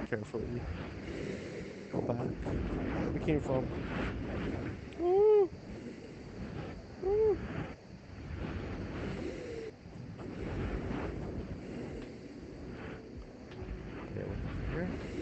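A man talks casually into a microphone, close by.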